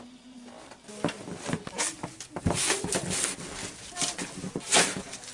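A shovel scrapes and crunches through snow.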